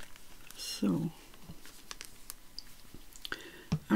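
A plastic bottle cap clicks open.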